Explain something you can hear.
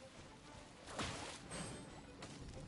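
A sword swishes through the air in a quick slash.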